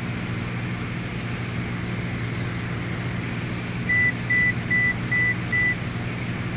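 Aircraft engines drone steadily inside a cockpit.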